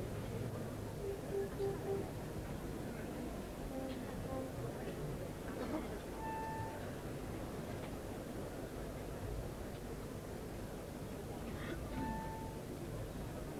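Wind instruments sound brief scattered notes.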